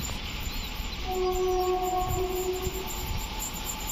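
A train horn blares in the distance.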